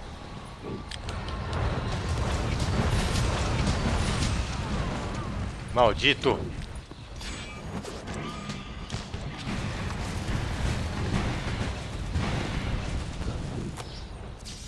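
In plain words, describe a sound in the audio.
Heavy blows and crashes of shattering crystal rumble on.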